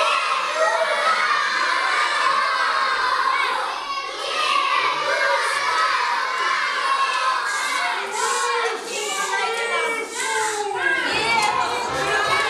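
Women sing loudly along with the music.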